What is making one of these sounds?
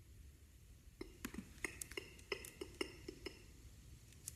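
Keys click in quick taps on a laptop keyboard.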